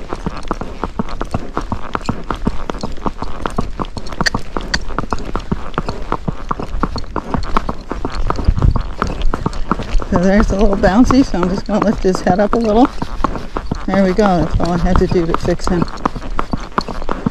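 Horse hooves clop steadily on a paved road.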